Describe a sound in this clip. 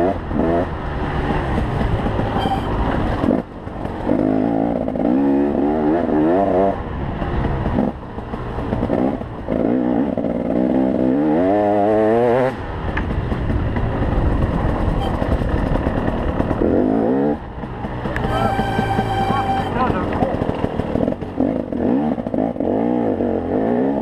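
Tyres scrape and bump over a rough dirt track.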